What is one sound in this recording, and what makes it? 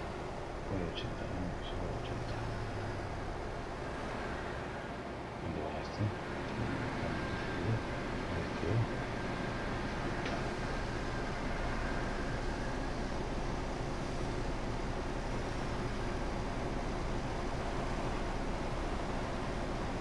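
A truck engine hums steadily as it drives along a highway.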